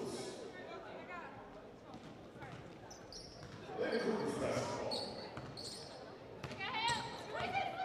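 A basketball bounces on the court with hollow thuds.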